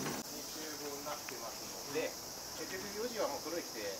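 A man speaks loudly to a small group nearby.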